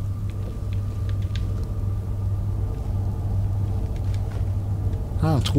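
A magic spell crackles and hums steadily.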